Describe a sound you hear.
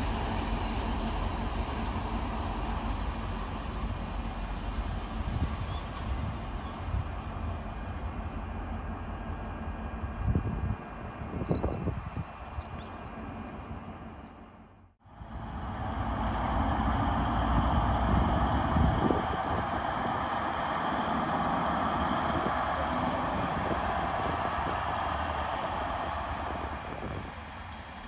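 A diesel locomotive engine rumbles steadily as it slowly approaches.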